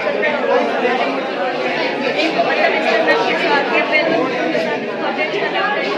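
A young woman speaks calmly into a microphone close by.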